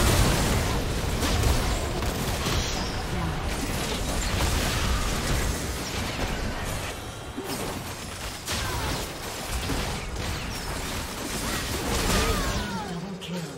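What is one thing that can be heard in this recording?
Game spell effects crackle, whoosh and clash in a fast fight.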